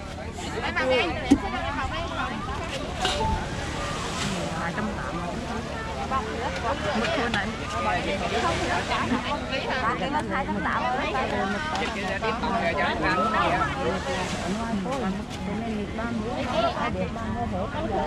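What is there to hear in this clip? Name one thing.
A crowd of men and women chatter loudly close by.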